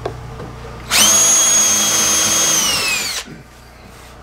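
A cordless drill whirs as it drives a screw into wood.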